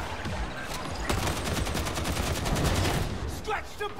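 An automatic gun fires in rapid bursts.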